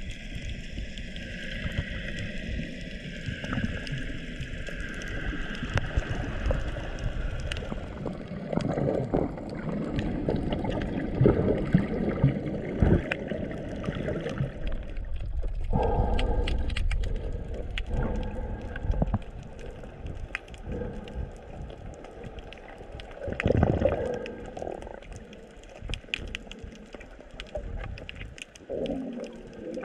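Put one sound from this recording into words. Water rushes and rumbles close by, heard from underwater.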